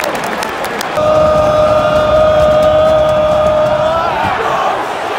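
A large stadium crowd chants together loudly.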